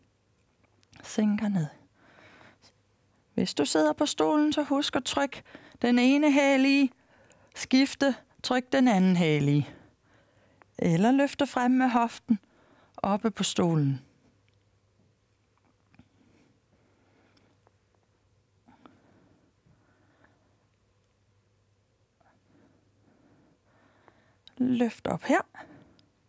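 A woman speaks calmly and clearly into a microphone, with pauses.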